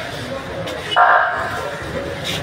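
A man shouts loudly close by.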